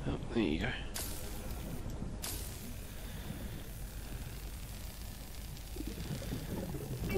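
A cutting tool hisses and crackles steadily.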